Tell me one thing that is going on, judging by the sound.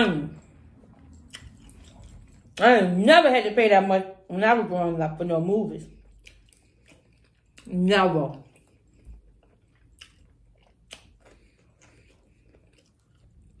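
A woman chews lettuce with a crunch.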